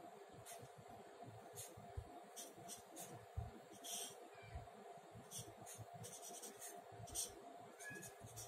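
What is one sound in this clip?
A marker squeaks and taps on paper.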